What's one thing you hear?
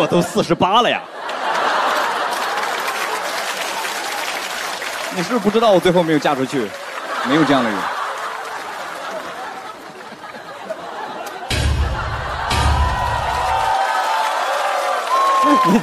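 An audience laughs and applauds.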